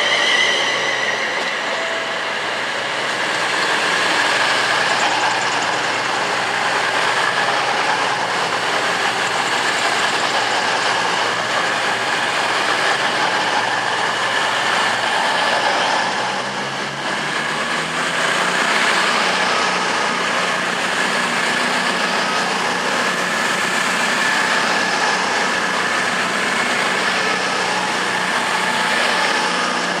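A high-speed train roars past close by, wheels rumbling on the rails.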